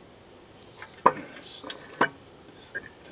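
Small metal parts click and tap as a motor is handled.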